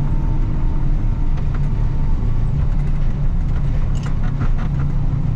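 A snow plough blade scrapes and crunches through snow.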